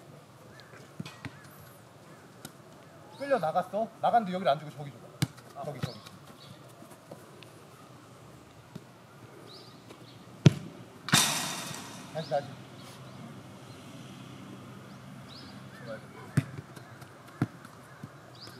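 A ball is kicked on artificial turf with dull thuds.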